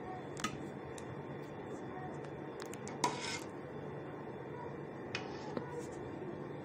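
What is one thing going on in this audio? A metal spoon clinks and scrapes against a glass baking dish.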